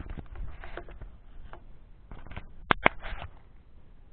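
A glass jar knocks against a hard surface.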